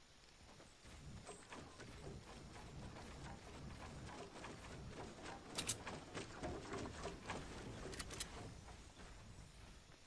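Wooden walls go up with quick knocking and clattering.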